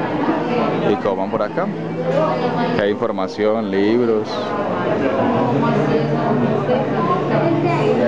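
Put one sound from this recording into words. Men and women chatter and talk nearby.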